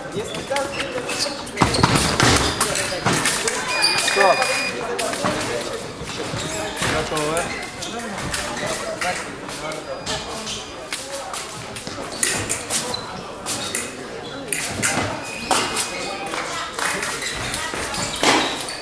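Many people talk in the background in a large echoing hall.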